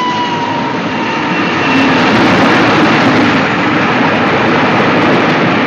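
A steam train roars past loudly, hissing and rumbling.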